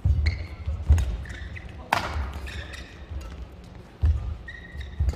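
Shoes squeak on a court floor.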